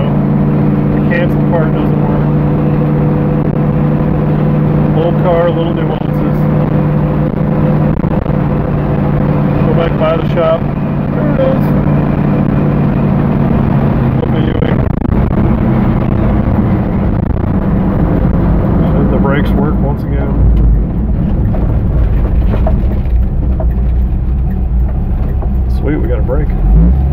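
A car engine hums steadily while driving.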